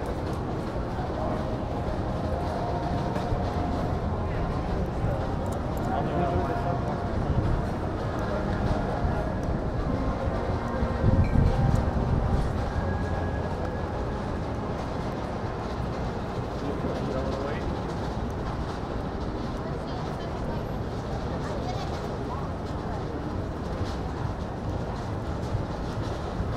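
Men and women chat at a distance in a busy open street.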